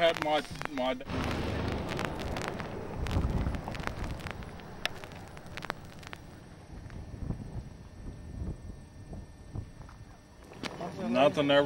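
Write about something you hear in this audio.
Wind rumbles across an open field.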